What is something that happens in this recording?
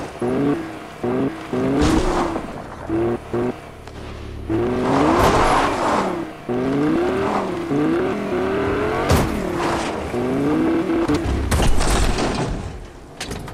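A car engine revs, rising and falling in pitch.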